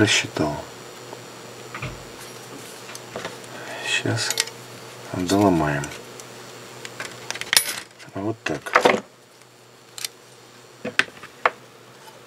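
Metal blades clink together as they are handled.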